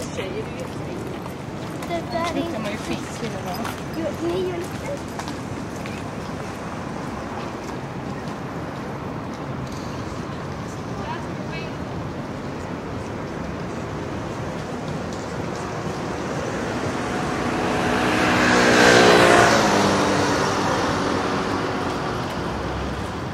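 Traffic hums steadily in the background outdoors.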